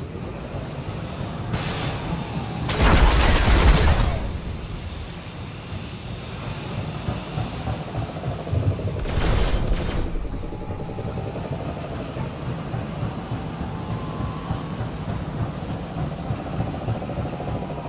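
A hovering combat vehicle's engine hums and whines throughout.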